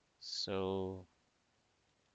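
A man speaks a short word close to a microphone.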